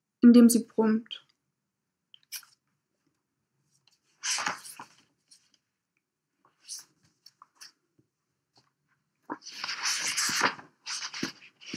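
A young woman speaks softly and closely into a microphone, with pauses.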